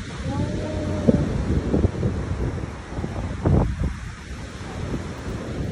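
Waves break and wash over rocks.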